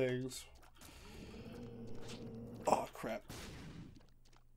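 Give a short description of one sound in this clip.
Short wet splats and pops sound from a game's shots.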